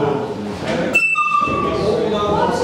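A recorder plays a short squeaky note.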